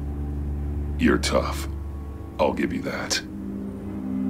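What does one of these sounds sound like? A man answers in a low, gravelly voice.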